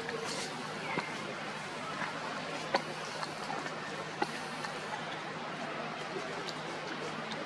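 Dry leaves rustle and crackle underfoot.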